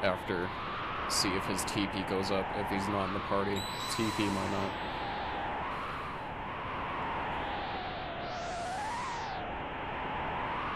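Calm video game music plays steadily.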